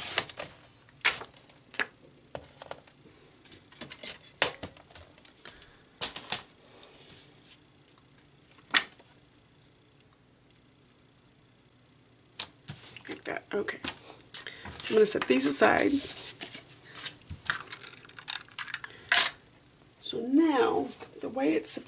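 Paper rustles and taps on a table as it is handled.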